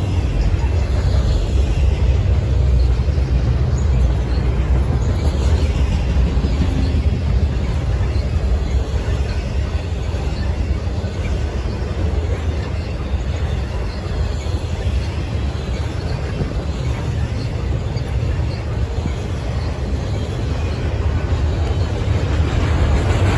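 A double-stack freight train rumbles past, steel wheels clattering on rails.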